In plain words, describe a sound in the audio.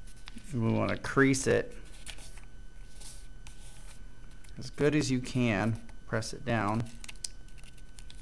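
Paper rustles and crinkles softly as it is folded by hand.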